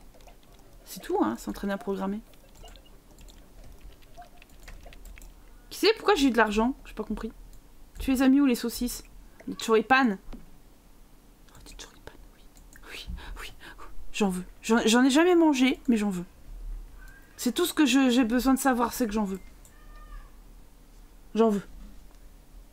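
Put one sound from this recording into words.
A young woman talks with animation into a close microphone, in bursts with pauses.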